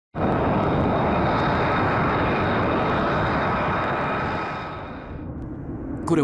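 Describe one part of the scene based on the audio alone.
Jet engines roar loudly nearby and then fade.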